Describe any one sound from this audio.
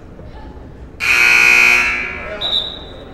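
A referee blows a whistle loudly.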